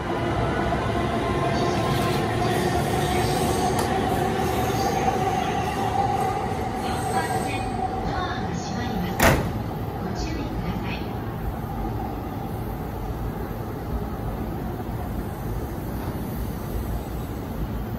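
An electric commuter train hums while standing at a platform.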